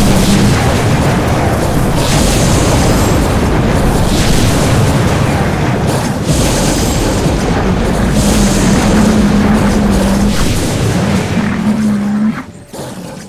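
Magic blasts and crackling energy roar during a fight.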